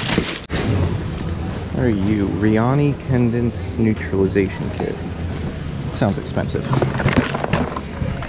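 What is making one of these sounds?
A cardboard box scrapes and thumps as hands handle it.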